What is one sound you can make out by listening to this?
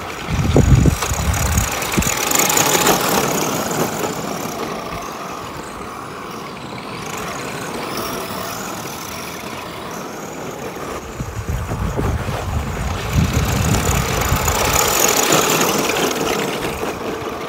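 Tyres of toy cars scrape and skid over loose dirt.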